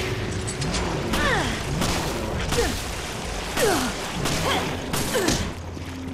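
Heavy blows thud during a struggle.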